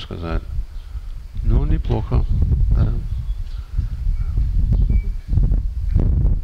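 An elderly man speaks calmly through a headset microphone.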